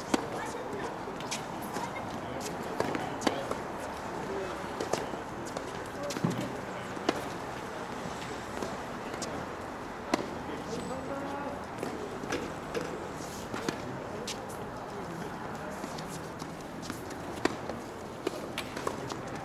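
Tennis balls bounce on a hard court nearby.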